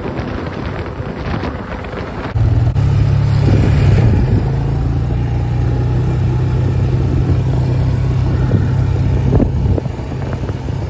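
A quad bike engine hums steadily and then revs louder.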